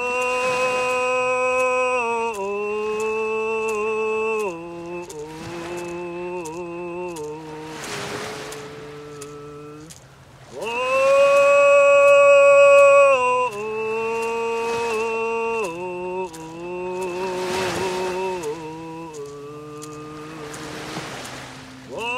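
A young man sings slowly in long held notes close by.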